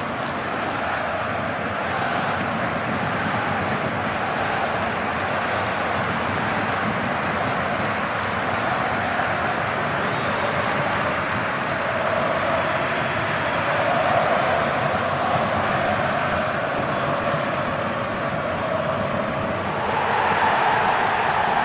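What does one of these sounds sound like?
A large stadium crowd cheers and roars steadily, swelling louder near the end.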